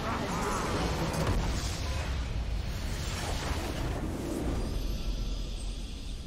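A crystal structure explodes with a deep blast.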